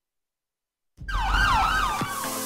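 A police siren wails as a vehicle drives past.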